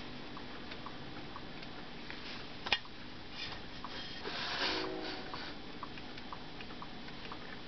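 Small plastic toys tick softly and steadily as they bob back and forth.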